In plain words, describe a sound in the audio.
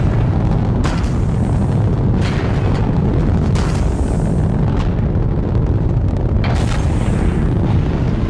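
Rocket engines roar with a deep, steady rumble.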